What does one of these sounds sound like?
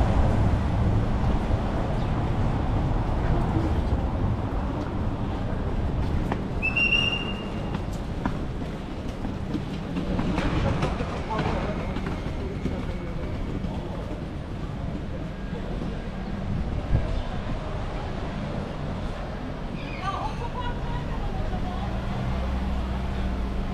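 Passersby chatter nearby.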